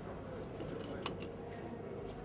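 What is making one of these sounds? A seatbelt buckle clicks into place.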